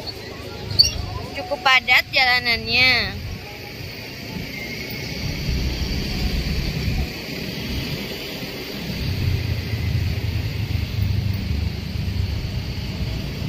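Motorbikes and cars pass nearby in street traffic.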